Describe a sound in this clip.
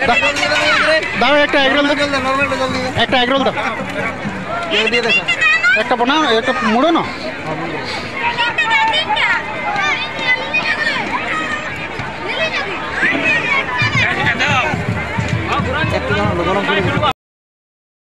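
A crowd of men and women talk loudly and busily close by.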